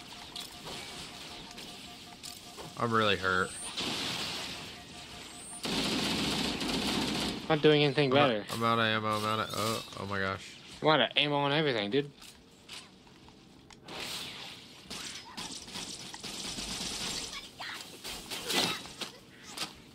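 Gunfire and energy weapons blast and crackle.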